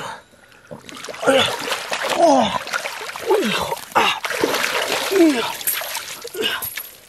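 A fishing net full of fish is dragged splashing through water.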